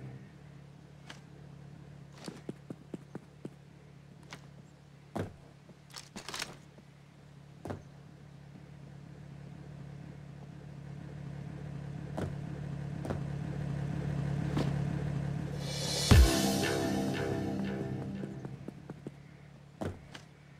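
Footsteps tap on hard ground at a steady walking pace.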